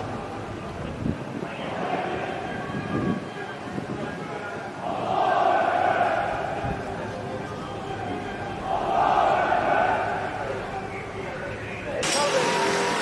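Men talk quietly nearby outdoors.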